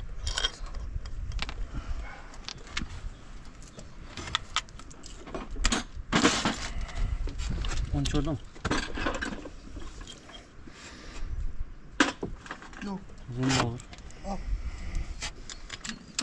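Metal parts click and clink as a water pump is handled on an engine.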